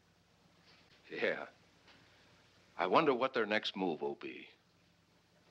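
A second man speaks calmly and firmly, close by.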